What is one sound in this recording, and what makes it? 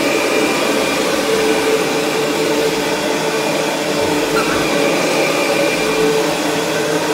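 A vacuum cleaner motor whirs loudly and steadily.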